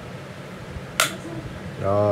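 A plastic latch clicks shut.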